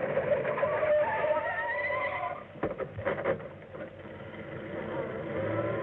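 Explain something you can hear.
Car tyres skid and scrape on a dusty road.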